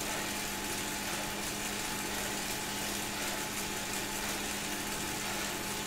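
A bike trainer whirs steadily under fast pedalling.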